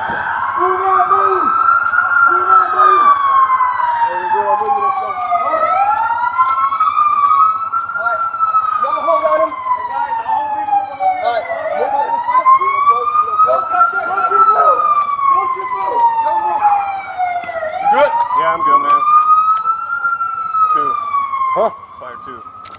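A siren wails nearby, rising and falling.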